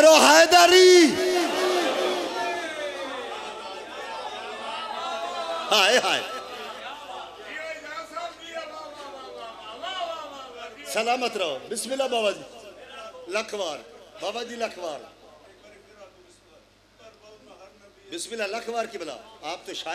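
A man speaks with passion into a microphone, heard through loudspeakers.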